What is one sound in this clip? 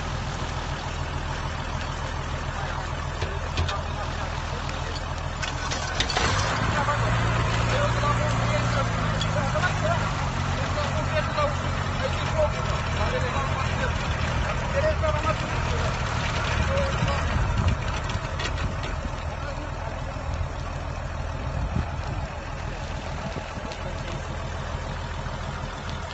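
A pump engine drones steadily close by.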